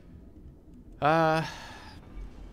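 A young man speaks briefly and loudly into a close microphone.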